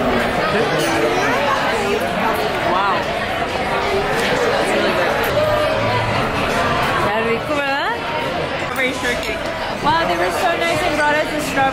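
Many people chatter in the background of a busy room.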